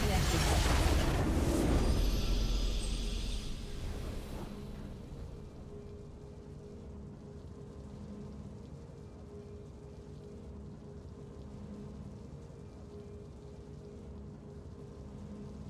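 A triumphant victory fanfare plays softly.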